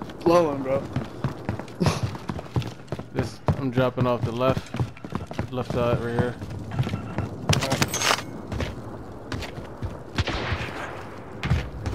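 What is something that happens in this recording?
Footsteps run over hard floors.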